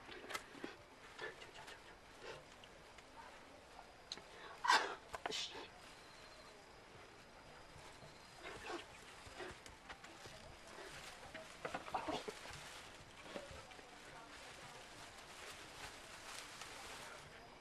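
Dry straw rustles and crackles.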